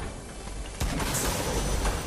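A treasure chest hums and chimes as it opens.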